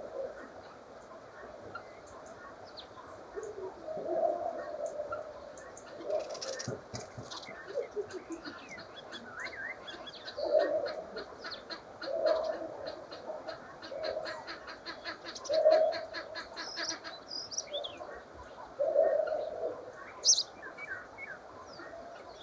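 Small birds chirp and twitter close by.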